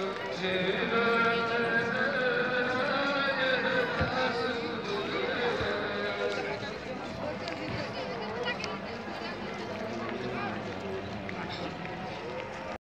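A crowd of men and women chants together outdoors.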